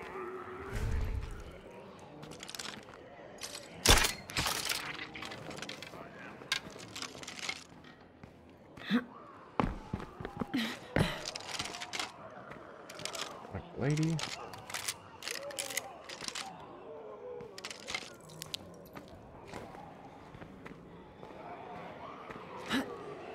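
Footsteps scuff and thud on a hard floor.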